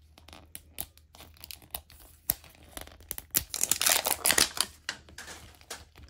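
Plastic wrapping crinkles and rustles as it is peeled off.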